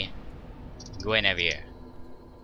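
A magical shimmering whoosh rises and fades.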